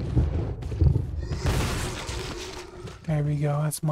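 A body falls heavily onto a wooden floor.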